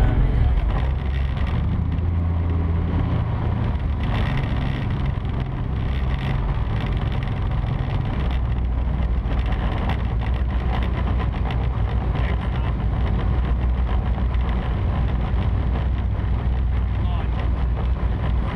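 A powerful boat engine roars steadily at close range.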